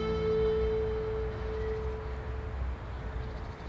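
A ship's horn sounds long and steady across the water.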